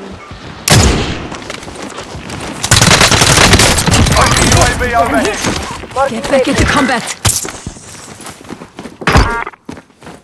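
Gunshots crack loudly in rapid bursts.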